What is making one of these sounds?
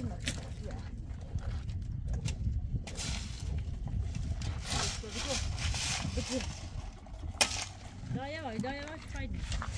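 A shovel scrapes into dry earth.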